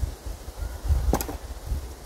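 Metal clinks as a lid is picked up.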